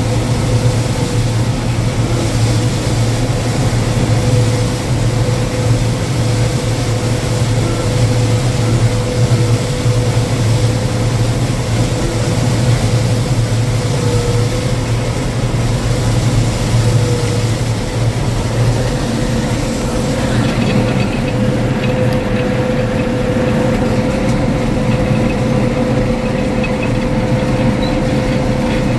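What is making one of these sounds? A combine harvester's engine drones loudly and steadily, heard from inside its cab.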